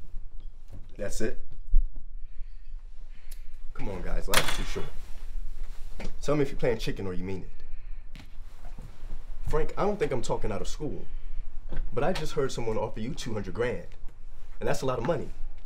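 A man speaks calmly and firmly nearby.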